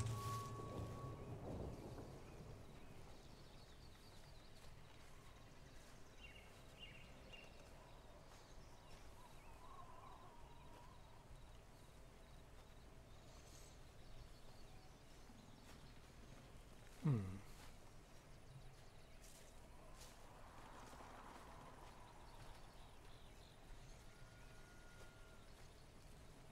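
Footsteps shuffle softly over rocky ground.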